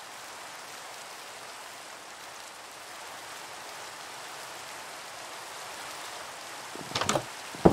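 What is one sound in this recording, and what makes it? Rain falls steadily and hisses.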